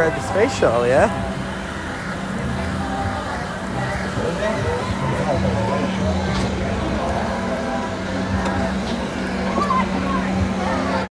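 An amusement ride's motor hums steadily.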